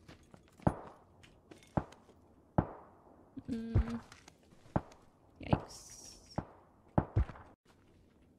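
Short game item clicks and rustles sound one after another.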